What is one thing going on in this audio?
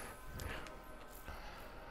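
Magic energy crackles and hums.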